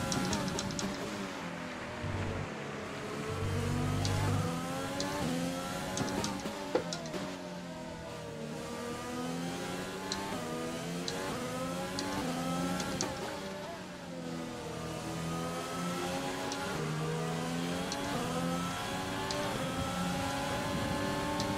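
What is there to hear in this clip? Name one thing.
A racing car engine roars at high revs, rising and dropping in pitch with each gear change.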